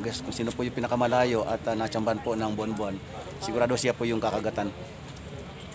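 A man speaks close to a phone microphone.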